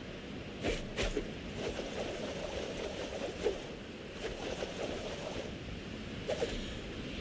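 Water splashes and ripples steadily around a small boat.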